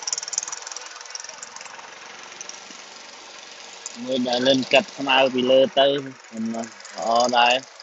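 A lawn mower engine runs nearby.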